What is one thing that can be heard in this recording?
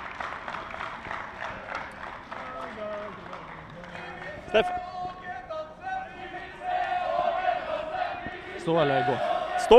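A crowd sings and chants far off in a large stadium.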